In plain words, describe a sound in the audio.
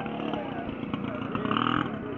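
A small motorcycle engine runs as it rides past.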